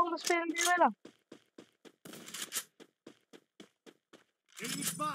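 Footsteps run quickly over paving stones.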